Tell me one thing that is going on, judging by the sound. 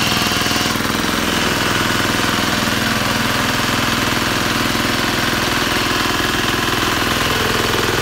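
A small petrol engine runs loudly and steadily.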